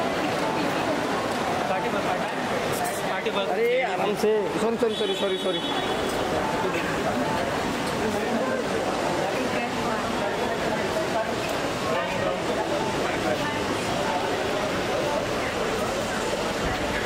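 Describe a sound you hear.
A crowd of people talks and calls out close by.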